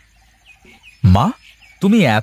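A man speaks loudly and with feeling.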